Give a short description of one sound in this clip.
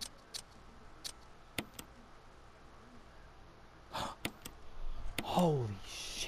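Short menu clicks sound several times.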